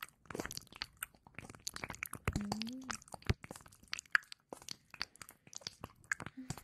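Soft crackling taps and brushing sounds come very close to a microphone.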